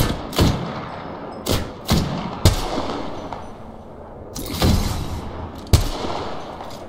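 Single rifle shots fire one at a time, each cracking sharply and echoing off rocks.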